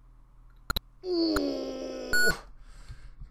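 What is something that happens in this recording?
A computer game plays a loud electronic tone.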